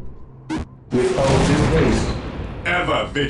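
A heavy structure crashes down with a rumbling burst.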